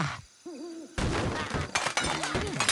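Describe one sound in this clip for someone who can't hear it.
Wooden blocks crash and clatter as a structure collapses.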